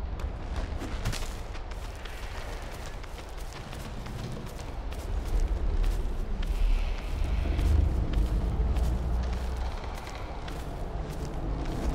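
Magical energy crackles and hums.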